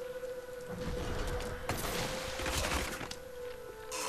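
A magic spell bursts with a crackle in a video game fight.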